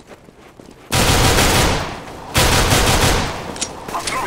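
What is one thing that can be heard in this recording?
A pistol fires several rapid shots close by.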